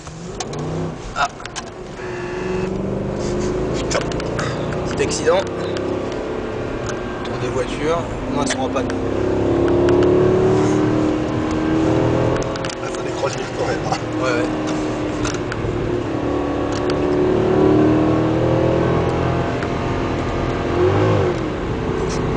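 A car engine hums and rises and falls in pitch as the car speeds along a winding road.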